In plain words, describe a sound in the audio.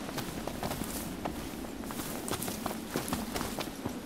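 Leaves rustle.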